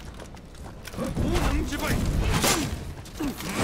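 A sword clashes against a weapon in combat.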